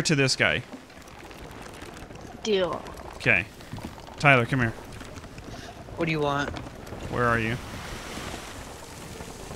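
Waves wash against a wooden ship's hull.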